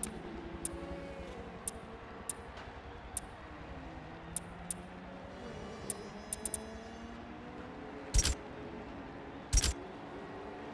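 Menu clicks tick quickly as selections move.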